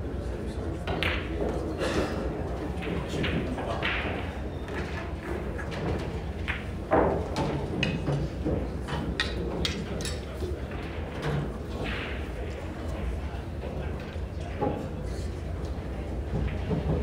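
Men talk quietly in the background.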